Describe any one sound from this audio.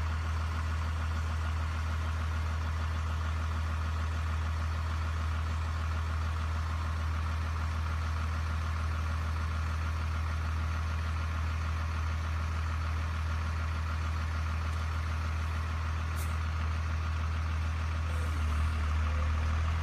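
A bus engine idles nearby with a low, steady rumble.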